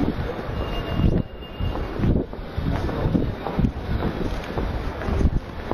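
Footsteps tap on a hard floor nearby.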